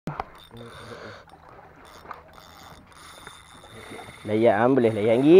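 A spinning reel winds in fishing line.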